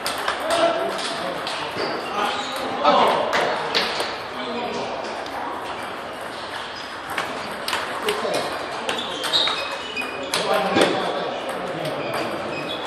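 Ping-pong balls click sharply on tables and paddles in a large echoing hall.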